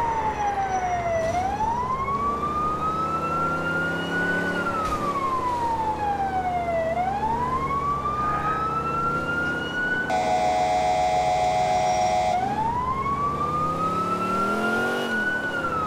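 A car engine revs up and down as the car shifts through gears.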